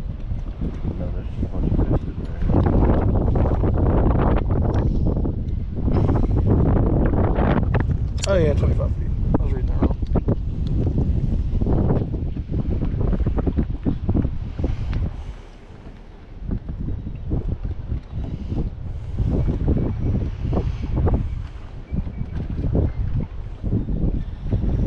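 Wind blusters hard against a microphone outdoors.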